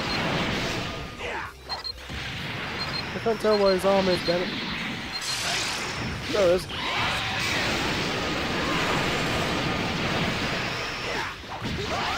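An energy beam fires with a loud rushing whoosh.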